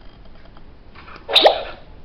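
A hand taps against a plastic toy.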